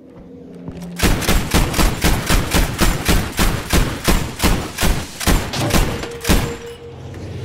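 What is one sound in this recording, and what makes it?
An anti-aircraft gun fires rapid booming shots in a steady rhythm.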